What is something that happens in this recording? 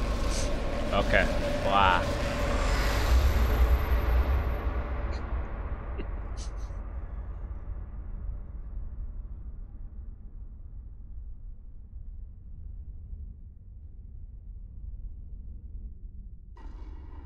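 A huge explosion booms and a deep rumble slowly fades.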